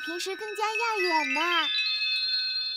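A boy speaks with animation.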